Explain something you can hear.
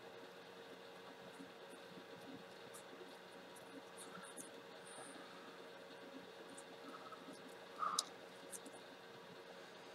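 Small metal tweezers click softly.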